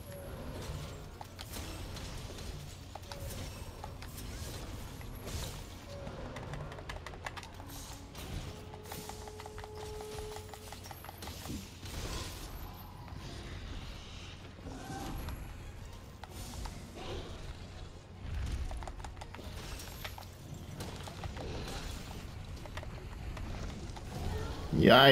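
A huge beast growls and roars.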